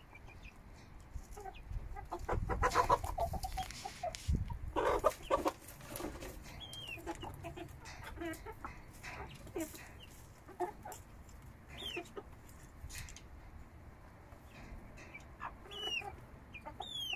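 Young chickens chirp and peep close by.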